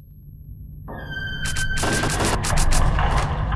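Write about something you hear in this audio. Loud gunshots ring out and echo.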